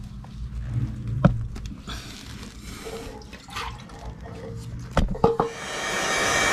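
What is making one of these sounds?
A rubber hose scrapes and knocks on a hard floor.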